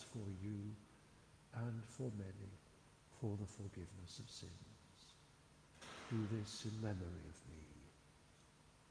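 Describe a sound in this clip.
A man reads aloud in a calm voice, echoing in a large stone church.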